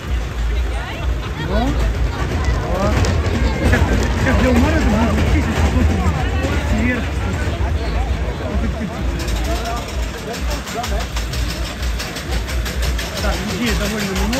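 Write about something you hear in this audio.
A small roller coaster rattles along its track.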